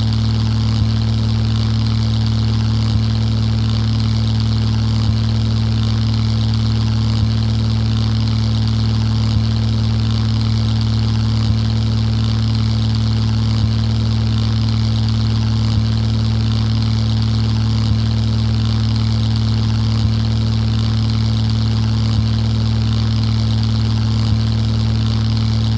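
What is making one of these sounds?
A propeller plane's engine drones steadily and loudly.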